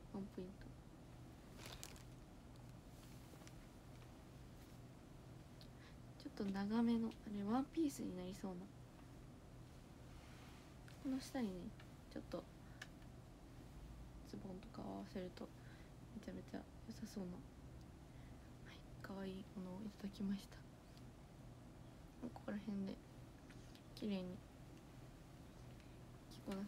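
Fluffy fabric rustles softly.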